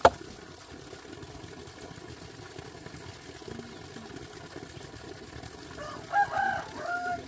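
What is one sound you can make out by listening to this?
Water pours steadily from a pipe and splashes below.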